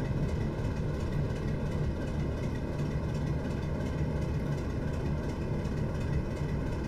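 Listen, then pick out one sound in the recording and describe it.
A diesel locomotive engine drones steadily.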